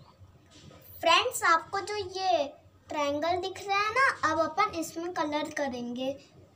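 A young child speaks with animation close by.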